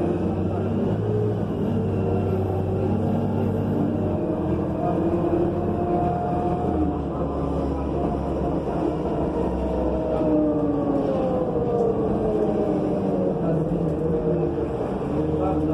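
A bus rattles and rumbles over the road.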